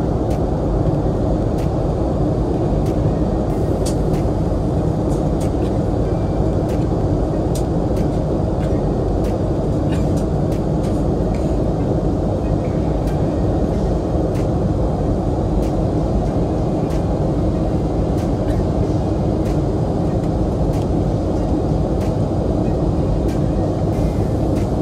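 Jet engines roar steadily inside an airliner cabin in flight.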